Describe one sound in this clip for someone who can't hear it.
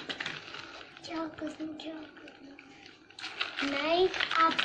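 A young girl talks close by in a high voice.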